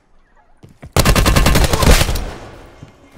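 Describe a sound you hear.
A rifle fires a rapid burst of loud shots indoors.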